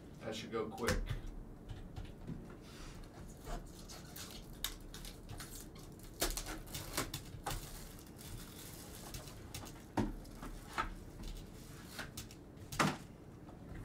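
Cards and packs click and rustle as they are handled.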